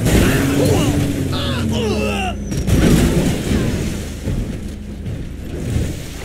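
Water splashes loudly as a heavy truck plunges into a pool.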